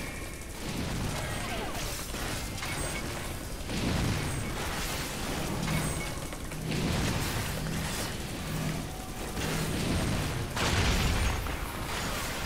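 Fiery explosions boom and rumble.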